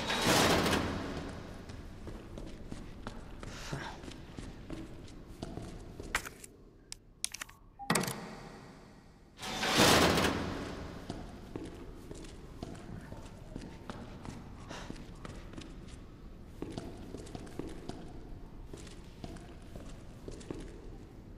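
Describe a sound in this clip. Footsteps walk slowly on a hard floor.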